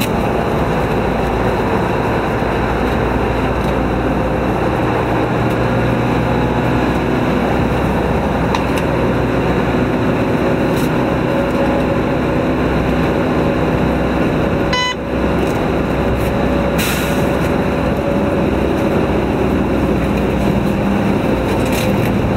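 A vehicle engine hums steadily while driving.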